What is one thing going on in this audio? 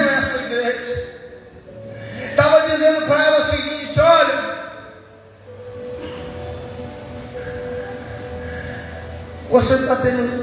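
A man speaks with animation into a microphone, heard through loudspeakers in a large echoing space.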